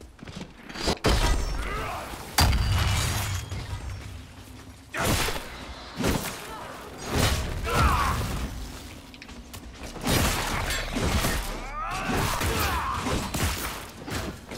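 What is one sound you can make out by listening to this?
Fire spells burst and roar in a fight.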